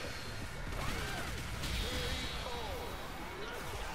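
Heavy punches and kicks land with loud, booming thuds.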